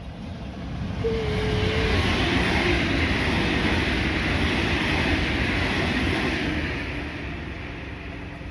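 An electric commuter train passes at speed.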